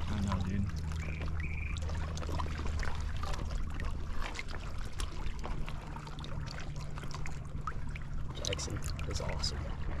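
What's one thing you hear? Water laps and splashes gently around a person's legs.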